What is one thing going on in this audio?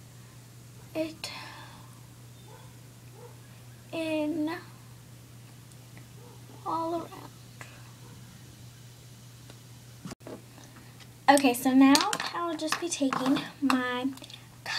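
A young girl talks close by, in short bursts and with animation.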